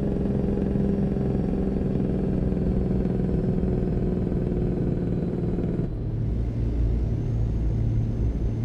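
A heavy truck engine hums steadily, then drops to a deeper rumble.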